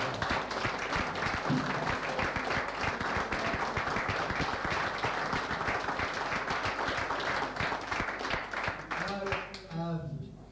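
A crowd claps and applauds loudly.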